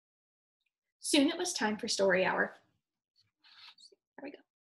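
A young woman reads aloud expressively, close to a microphone.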